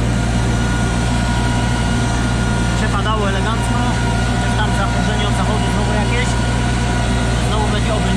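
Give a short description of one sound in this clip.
A disc harrow rattles and scrapes through the soil behind a tractor.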